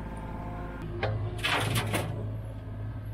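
Dirt pours from an excavator bucket into a metal truck bed.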